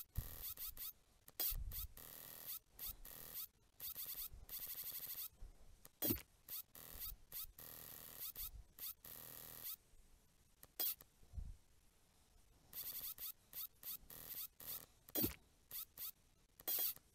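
A springy mechanical arm stretches and retracts with quick, bouncy boings and clanks.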